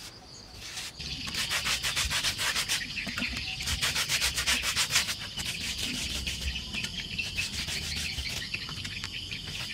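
A stiff brush scrapes quickly back and forth over rough concrete.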